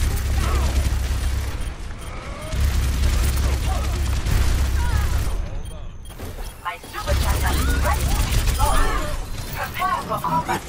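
A rapid-fire gun rattles loudly.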